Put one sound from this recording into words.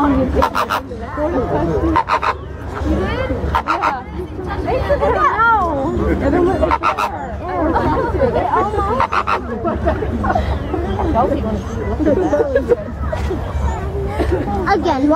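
A woman talks cheerfully nearby.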